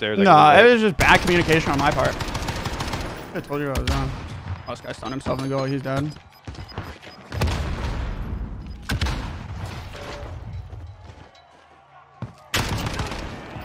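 Rapid gunfire bursts.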